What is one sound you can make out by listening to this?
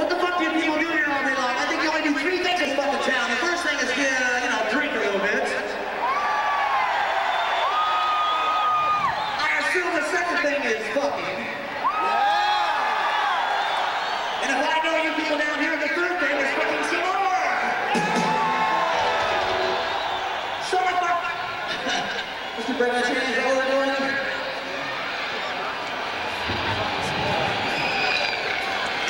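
A rock band plays loud music through speakers.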